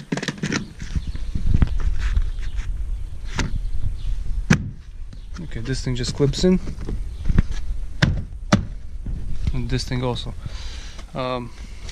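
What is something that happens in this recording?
Plastic trim clips snap and click as a panel is pried loose.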